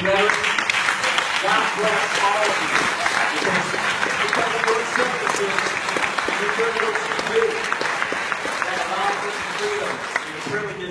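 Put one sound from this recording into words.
A young man sings into a microphone through loudspeakers in a large echoing hall.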